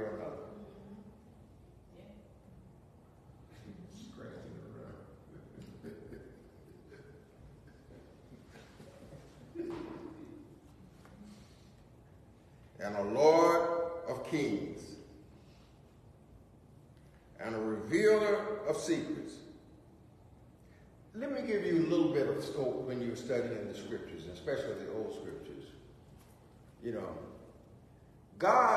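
A middle-aged man speaks calmly into a nearby microphone, pausing often.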